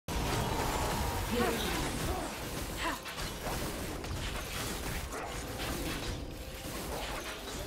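Game spell effects whoosh and zap during a fight.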